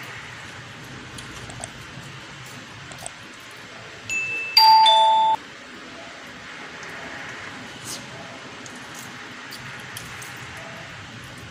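Fingers squish rice and crunchy noodles.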